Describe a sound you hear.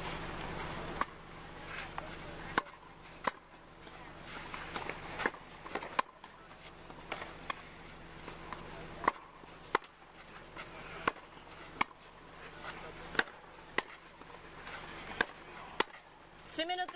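Tennis rackets strike a ball back and forth with sharp pops.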